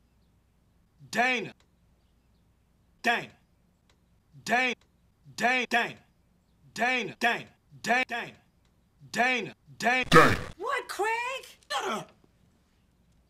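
A man shouts loudly and repeatedly, close by.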